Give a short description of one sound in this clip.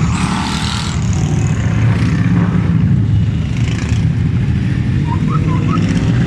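Many motorcycle engines rumble and drone steadily as a large group rides past.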